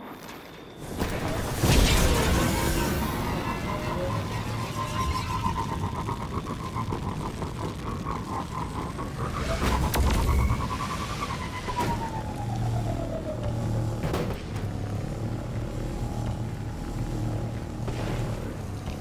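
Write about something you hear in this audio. A hover vehicle's engine hums and roars steadily as it speeds along.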